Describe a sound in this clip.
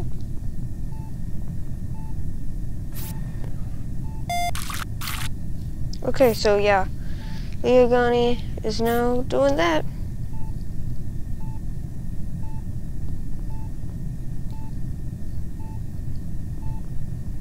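A scanner hums with soft, regular beeps.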